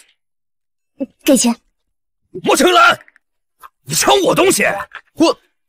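A man speaks sharply and with agitation, close by.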